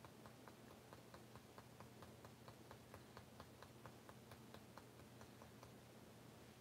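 Fingers tap quickly and steadily on a soft plastic mold.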